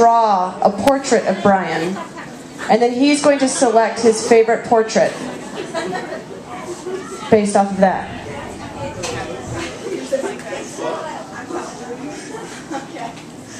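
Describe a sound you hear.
A young woman speaks into a microphone over loudspeakers on a stage.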